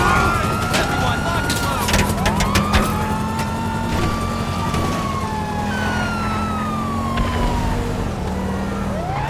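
A car engine roars steadily as a car drives fast.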